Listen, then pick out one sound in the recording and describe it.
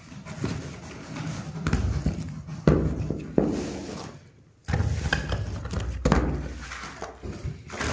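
Chunks of broken concrete knock and clatter against each other.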